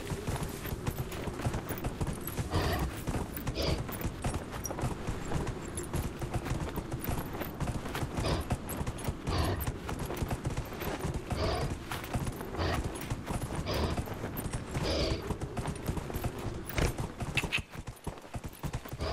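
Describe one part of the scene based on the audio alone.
A horse's hooves thud steadily on dirt as it gallops.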